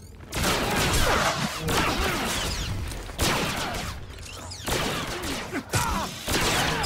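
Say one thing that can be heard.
Fiery blasts crackle and whoosh in quick bursts.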